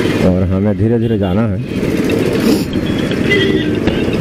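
Auto rickshaw engines putter nearby in traffic.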